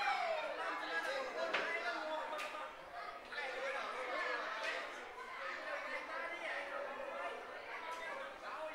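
Young children sing together in an echoing hall.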